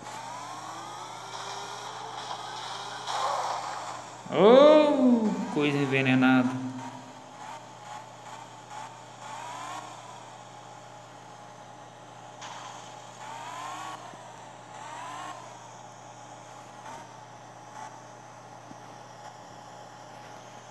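A car engine hums and revs up and down as it drives.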